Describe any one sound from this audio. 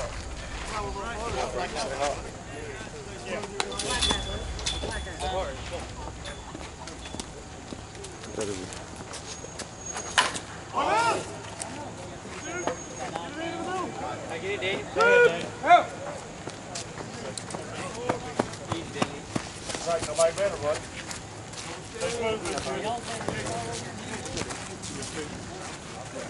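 Men talk and call out outdoors across an open field.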